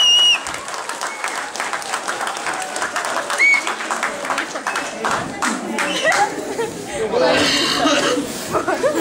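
A crowd of men and women clap in an echoing hall.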